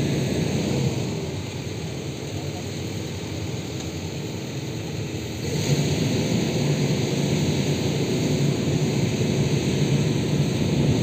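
A heavy excavator engine rumbles nearby, growing louder partway through.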